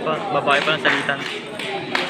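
Children clap their hands.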